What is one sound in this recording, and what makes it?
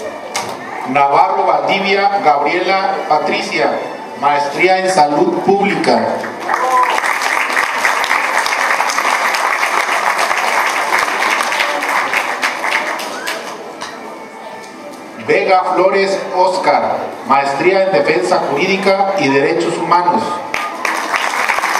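A man reads out names over a loudspeaker in a large echoing hall.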